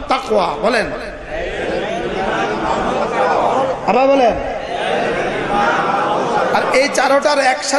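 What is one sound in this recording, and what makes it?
A middle-aged man preaches with fervour through a microphone and loudspeakers, in a sing-song voice.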